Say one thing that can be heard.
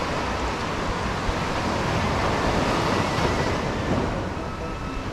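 Small waves wash steadily onto a sandy shore outdoors.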